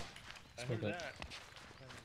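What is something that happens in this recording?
Boots thud on dry dirt as soldiers run.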